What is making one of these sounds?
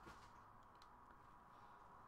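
Footsteps tread softly on the ground.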